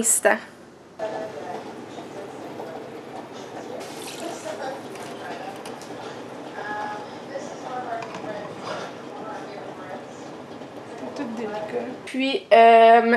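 A small electric milk frother whirs as it stirs a drink in a glass.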